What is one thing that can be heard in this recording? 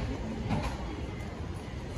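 People walk past, footsteps close by.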